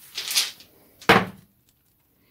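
A small die knocks down onto a table.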